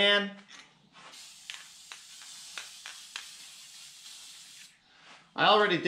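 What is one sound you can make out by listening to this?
An aerosol spray can hisses steadily.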